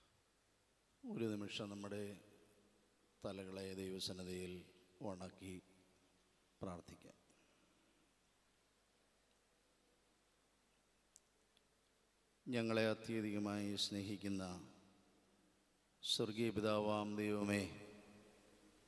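A middle-aged man speaks with emphasis into a microphone, in bursts with long pauses.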